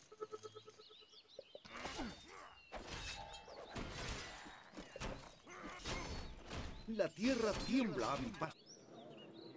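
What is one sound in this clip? Weapons clash and soldiers fight in a noisy battle.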